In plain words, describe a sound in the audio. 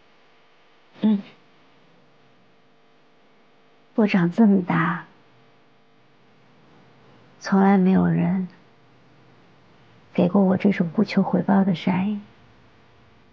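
A young woman speaks quietly and calmly, close by.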